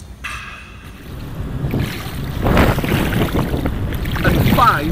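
Water splashes and churns loudly.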